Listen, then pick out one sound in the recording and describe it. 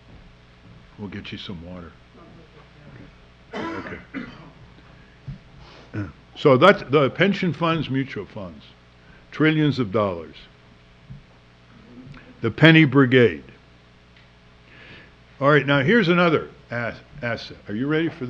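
An elderly man speaks into a microphone in bursts, with pauses between phrases.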